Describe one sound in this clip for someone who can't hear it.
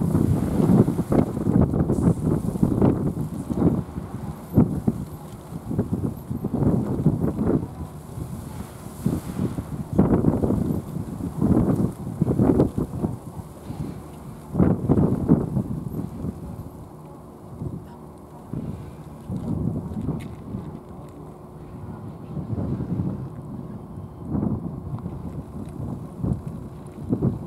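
Cats chew and smack wetly on food up close.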